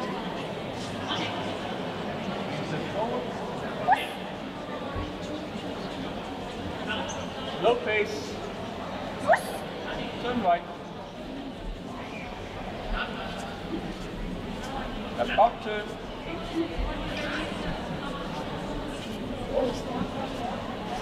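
A woman gives short commands to a dog.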